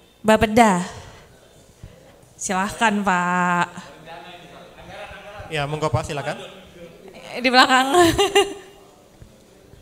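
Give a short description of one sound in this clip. A woman speaks with animation into a microphone in a large echoing room.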